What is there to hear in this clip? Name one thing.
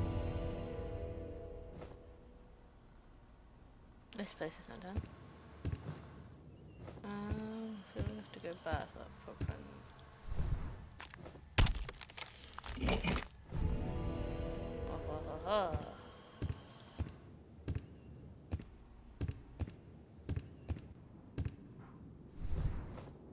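Soft game music plays with chiming tones.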